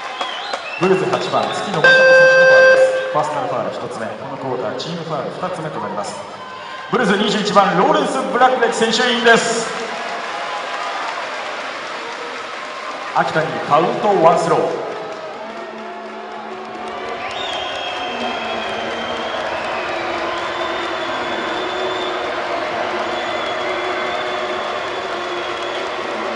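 A large crowd cheers and chants in an echoing hall.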